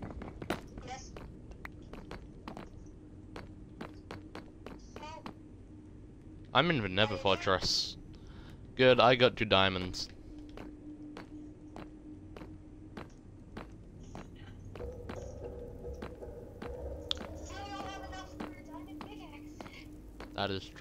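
Footsteps tap steadily on hard stone.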